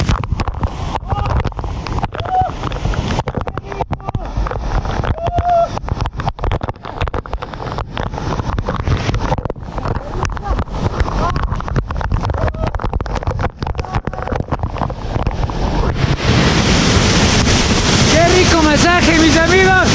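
Water from a waterfall crashes and splashes loudly close by.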